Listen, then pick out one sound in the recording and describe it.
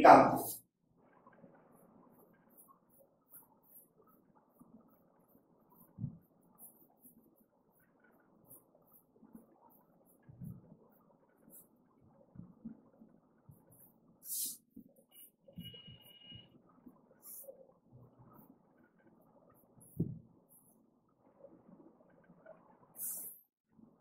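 An eraser rubs against a whiteboard.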